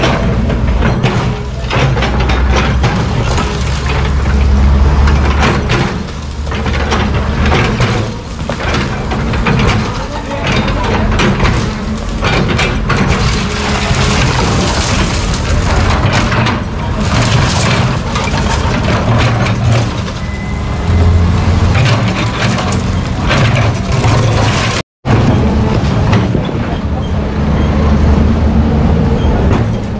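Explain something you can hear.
Concrete rubble crashes and scrapes as an excavator breaks a wall.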